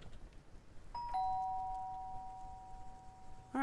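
A doorbell chimes two notes that ring on and fade.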